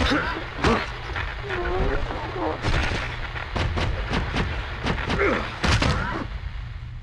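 A creature groans and shrieks.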